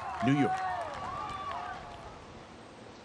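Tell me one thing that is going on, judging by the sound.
A crowd cheers and shouts in a stadium.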